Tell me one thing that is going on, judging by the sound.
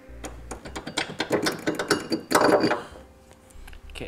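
Metal parts clink and rattle under a vehicle.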